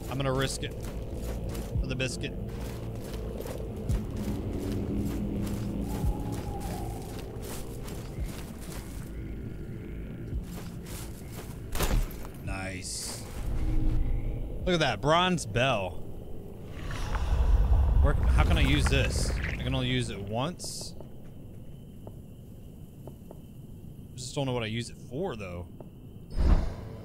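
A man talks close to a microphone, with animation.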